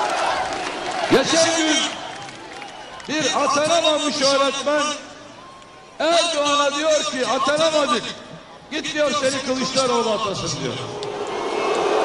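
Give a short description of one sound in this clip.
A man speaks forcefully into a microphone, heard through loudspeakers outdoors.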